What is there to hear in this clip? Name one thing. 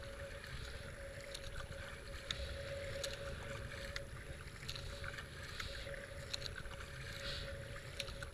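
A paddle splashes rhythmically into water.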